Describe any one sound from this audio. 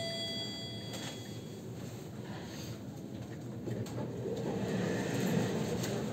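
A finger presses an elevator button with a soft click.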